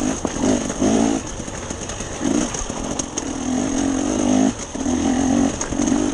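Tyres crunch and rattle over loose rocks.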